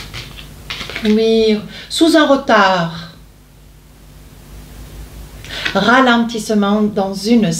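An older woman speaks calmly and close by.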